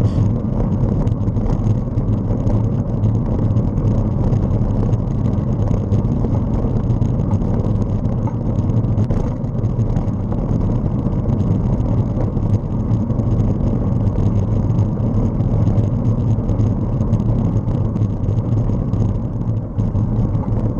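A vehicle's tyres rumble steadily along a road.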